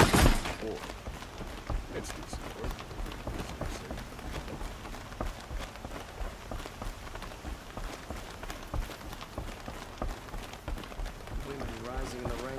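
Footsteps run quickly over hollow wooden planks.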